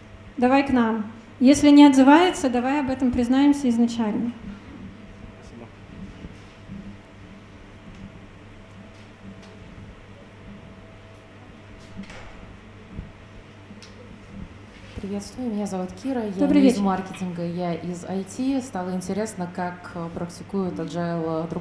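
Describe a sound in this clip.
A young woman speaks calmly into a microphone, heard through loudspeakers in a large room.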